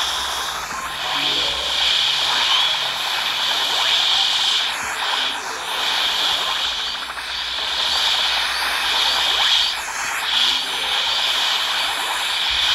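Fire roars and whooshes in repeated bursts.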